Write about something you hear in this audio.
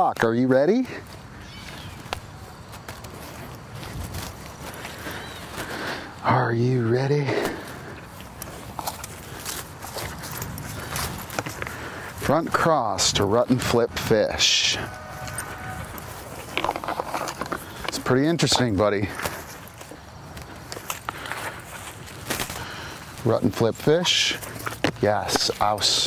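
A man talks to a dog outdoors.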